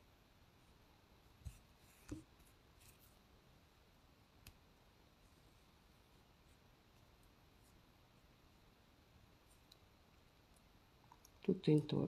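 Yarn rustles softly as it is pulled through crocheted fabric.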